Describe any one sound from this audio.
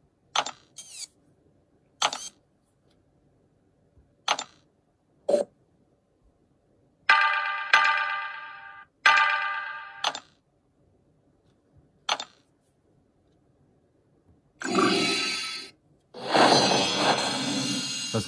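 A tablet game plays short electronic chimes and whooshes when tapped.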